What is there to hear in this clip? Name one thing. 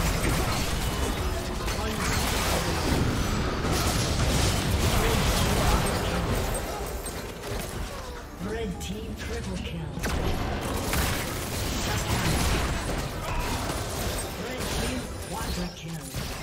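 Video game spell effects crackle and burst during a fight.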